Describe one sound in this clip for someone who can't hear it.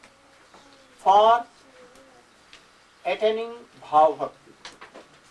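An elderly man speaks calmly and slowly nearby, with long pauses.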